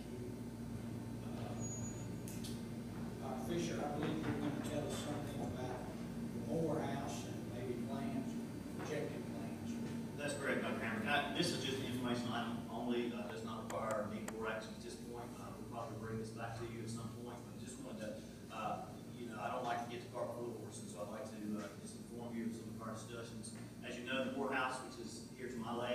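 A man speaks calmly into a microphone, heard in a large room.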